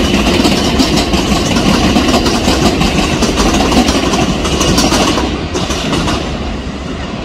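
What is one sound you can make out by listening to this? A train rumbles along the tracks in the distance.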